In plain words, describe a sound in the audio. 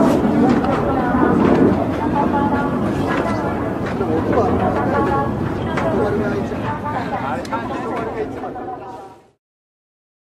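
A jet engine roars in the distance.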